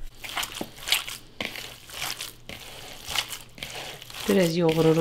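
Hands squish and squelch wet minced meat in a bowl.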